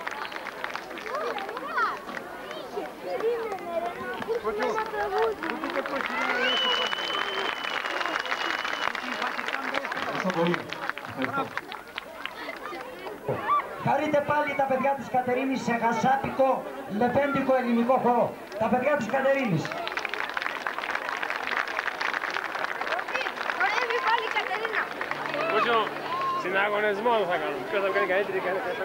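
A large crowd murmurs and chatters.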